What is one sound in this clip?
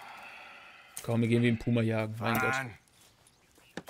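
A man with a deep, low voice speaks calmly.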